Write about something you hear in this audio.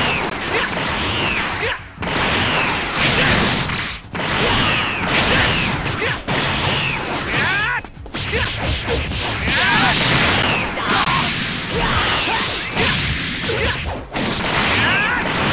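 Punches and kicks land with heavy thuds in a video game fight.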